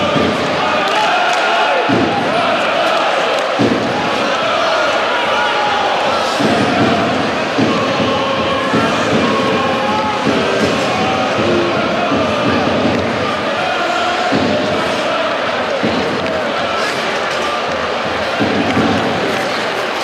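A large crowd chants and cheers in an echoing arena.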